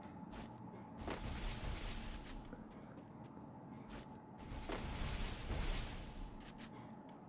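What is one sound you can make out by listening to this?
A short rushing burst sounds as a barrier springs up, again and again.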